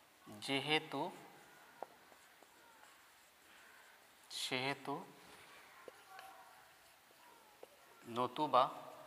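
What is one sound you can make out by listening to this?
A man speaks slowly and clearly in short phrases.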